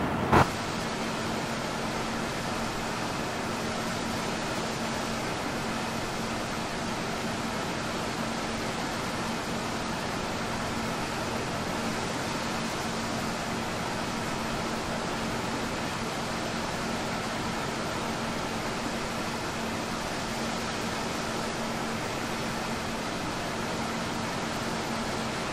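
A jet engine whines steadily as an airliner is pushed back.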